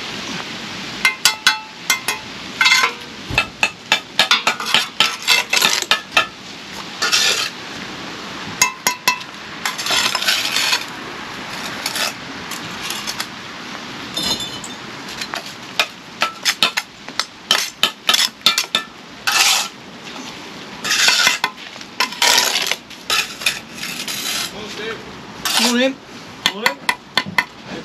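A brick trowel taps concrete blocks into place.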